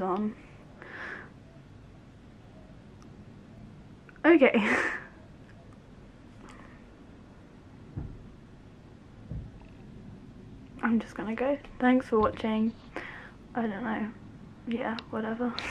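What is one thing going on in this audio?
A young woman speaks calmly close to the microphone.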